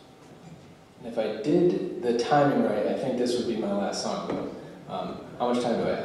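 A man talks animatedly into a microphone, heard through loudspeakers.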